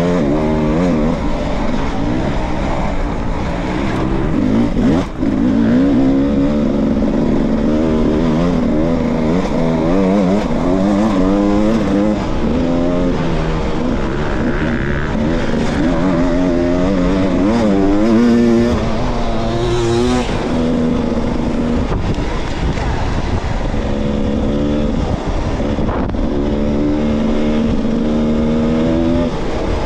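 A dirt bike engine revs up and down, close by.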